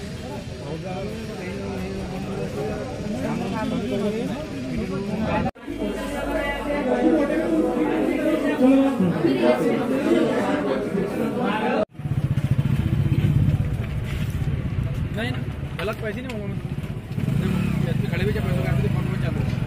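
A crowd of men talks and murmurs outdoors.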